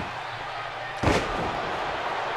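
A heavy body slams onto a wrestling ring mat.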